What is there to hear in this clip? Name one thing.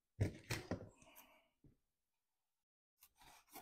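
Scissors are set down on a table with a light clunk.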